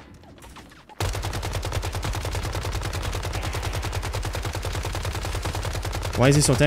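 Rapid gunfire rattles steadily.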